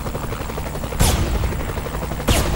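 A sniper rifle fires loud sharp shots.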